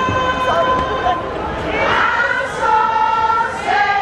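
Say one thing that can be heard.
A woman sings into a microphone, heard through loudspeakers.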